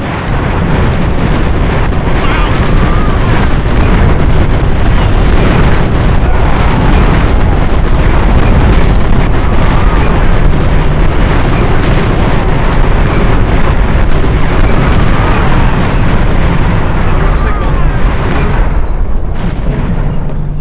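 Gunfire crackles steadily in battle.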